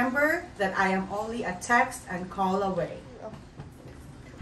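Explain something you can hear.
A woman speaks calmly up close.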